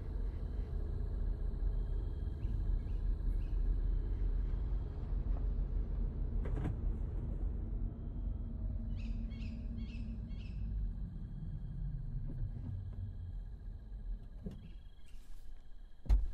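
A car engine hums low as the car rolls slowly and comes to a stop.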